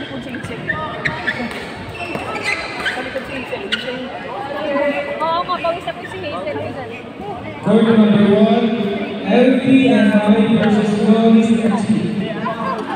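Men and women talk and call out nearby in an echoing hall.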